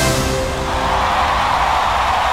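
A band's last chord rings out and dies away.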